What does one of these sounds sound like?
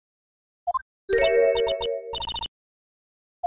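A sudden loud electronic flash sound rings out.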